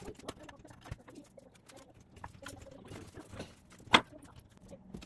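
A metal bending brake clanks as it folds a sheet of metal.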